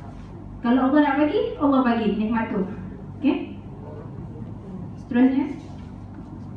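A young woman speaks into a microphone over a loudspeaker in an echoing room.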